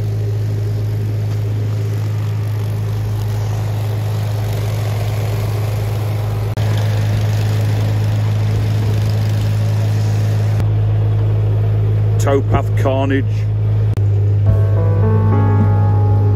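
A boat engine chugs steadily nearby.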